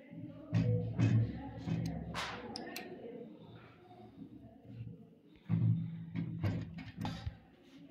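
A wrench scrapes and clicks on a metal nut.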